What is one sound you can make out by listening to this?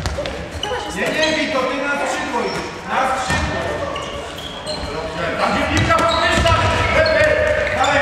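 A handball thuds as it bounces on the hard floor.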